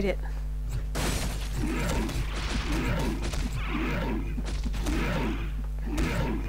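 Weapons clash and thud in a close fight.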